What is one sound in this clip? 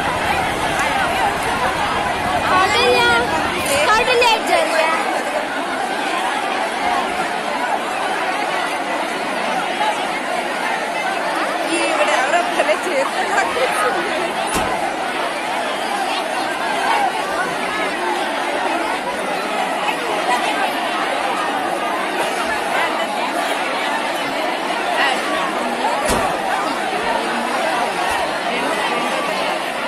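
A large crowd shouts and cheers loudly outdoors.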